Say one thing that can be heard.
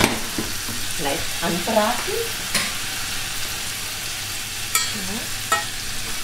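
A spoon clinks against a metal pot.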